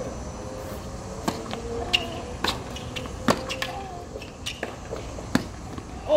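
Tennis shoes squeak on a hard court.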